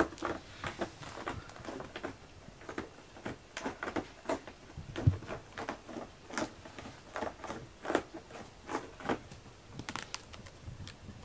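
A cat sniffs loudly close by.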